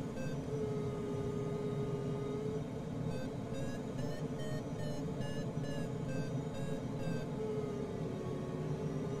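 Air rushes steadily over a glider's canopy.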